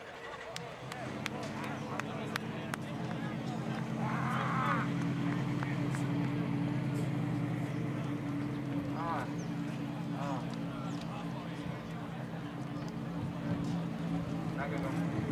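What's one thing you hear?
A race car engine idles with a deep, steady rumble.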